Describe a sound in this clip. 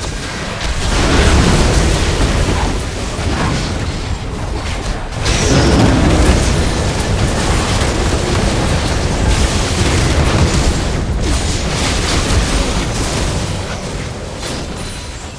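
Spell and combat sound effects of a video game clash and burst.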